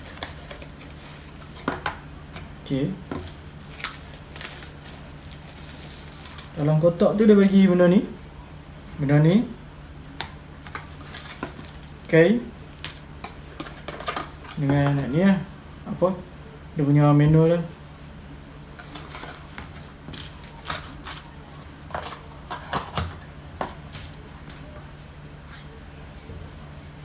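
Cardboard and plastic packaging rustles and clicks as it is handled.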